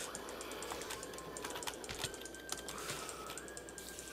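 A spider hisses.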